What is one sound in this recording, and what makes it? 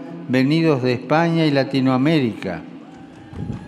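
An elderly man reads out slowly into a microphone.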